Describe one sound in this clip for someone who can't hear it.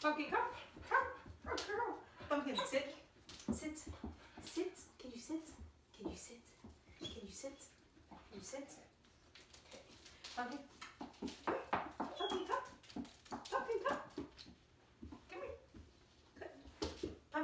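A dog's paws patter on a wooden floor.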